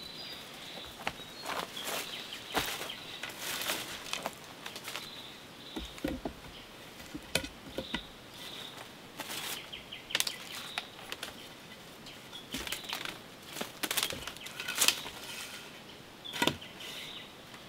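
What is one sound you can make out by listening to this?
Bamboo poles knock and clatter against each other.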